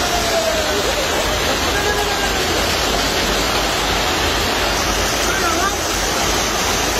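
Hail pours down loudly and drums on the ground and a train roof.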